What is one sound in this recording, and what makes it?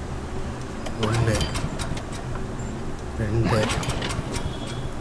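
A starter cord is yanked sharply on a generator.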